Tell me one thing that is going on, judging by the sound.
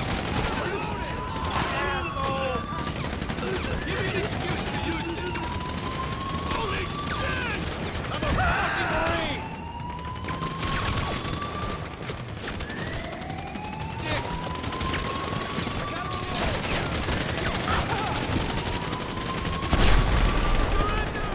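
Rockets are fired and whistle through the air, one after another.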